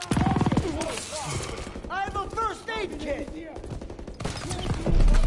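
A young man talks excitedly close to a microphone.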